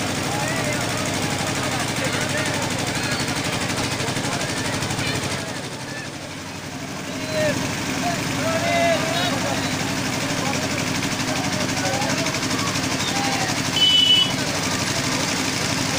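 A crowd of people chatters and murmurs nearby.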